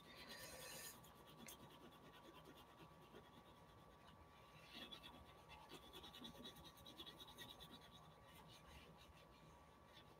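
An oil pastel scratches and scrapes across paper in quick strokes.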